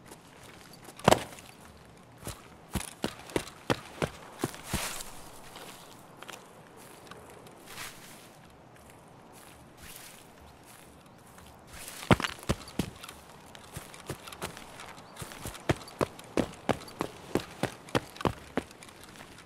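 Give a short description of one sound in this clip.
Footsteps crunch and thud on grass and rock.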